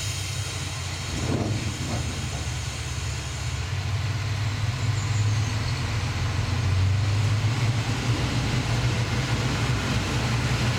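A train engine hums steadily with a low drone as the train rolls slowly along the track.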